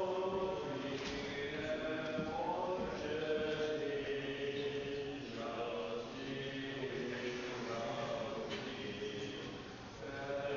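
A man chants in a large, echoing hall.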